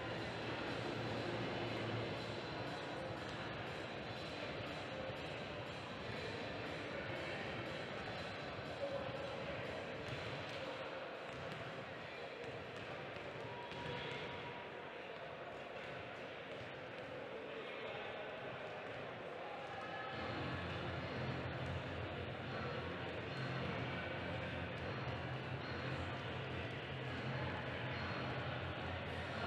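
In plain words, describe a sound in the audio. Wheelchair wheels squeak and roll on a hard court in a large echoing hall.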